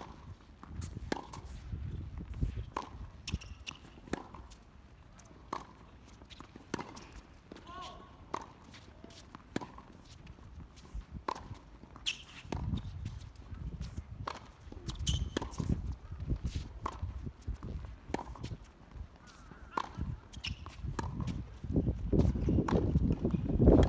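Tennis balls are struck with rackets in a steady rally, each hit a sharp pop.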